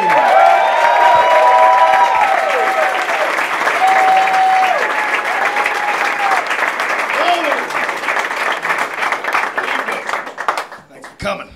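An audience cheers and laughs loudly in a room.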